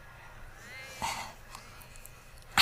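A woman laughs softly, close by.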